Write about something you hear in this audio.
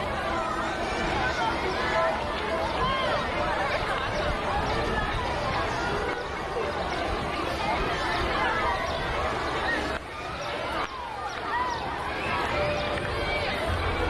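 A crowd of adults and children chatters all around outdoors.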